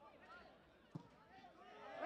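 A football is kicked on artificial turf.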